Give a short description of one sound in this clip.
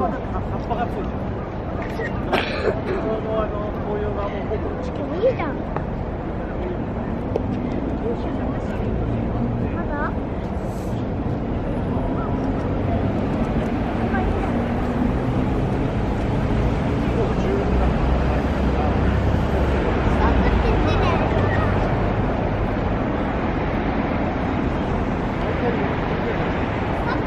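A low city traffic rumble hums steadily outdoors.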